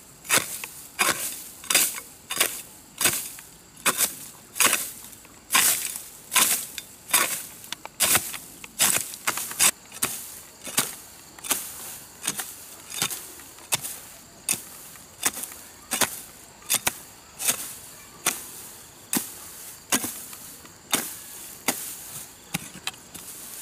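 A hoe chops into dry earth in steady, regular strokes.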